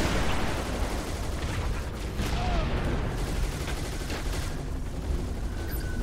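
Gunshots and energy blasts crack in quick bursts.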